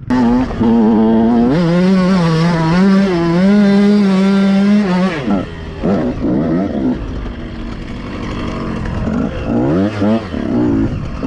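A dirt bike engine revs hard and loud close by, rising and falling in pitch.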